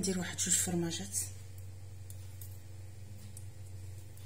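An eggshell cracks against a knife.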